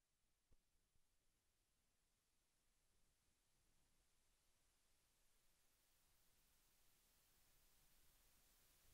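Wind rushes past outdoors, slowly growing louder.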